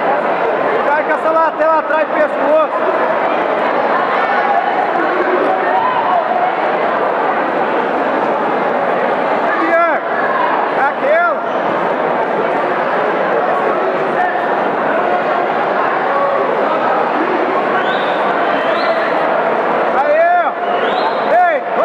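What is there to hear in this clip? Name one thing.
Men in the crowd shout loud encouragement.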